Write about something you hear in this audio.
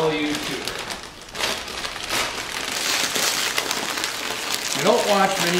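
A snack bag crinkles as it is handled.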